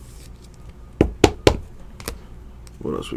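Trading cards rustle and snap as they are handled and flipped.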